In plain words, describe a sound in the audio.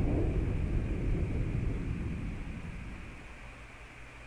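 A jet engine roars in the distance and slowly fades away.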